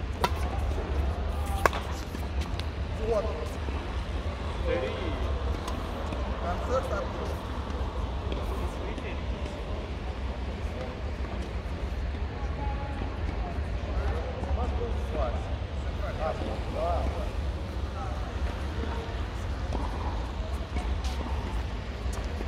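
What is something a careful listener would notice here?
Men talk casually nearby in a large echoing hall.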